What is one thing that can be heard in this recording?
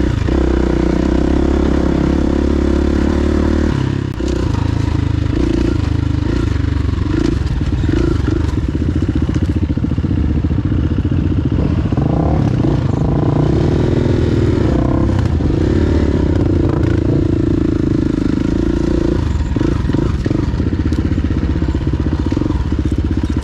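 A dirt bike engine revs and roars up close, rising and falling as it shifts gears.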